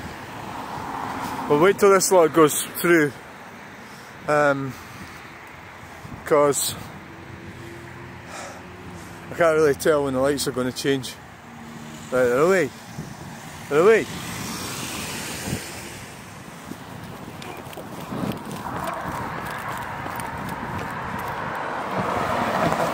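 A car drives past on a wet road, its tyres hissing.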